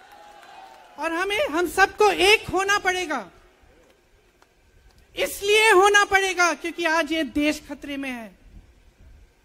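A woman speaks forcefully into a microphone over loudspeakers, in short bursts with pauses.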